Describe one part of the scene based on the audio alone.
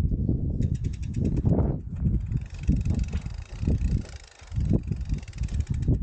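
Mountain bike tyres roll over dry grass and dirt.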